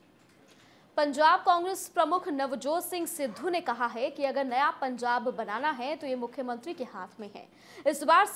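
A woman reads out the news clearly and steadily through a microphone.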